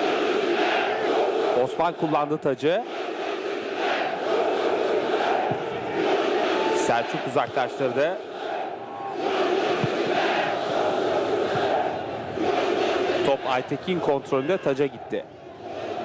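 A large crowd cheers and chants steadily in an open stadium.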